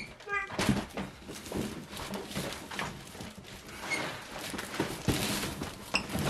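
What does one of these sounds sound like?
A large paper-wrapped parcel rustles and scrapes against a doorway.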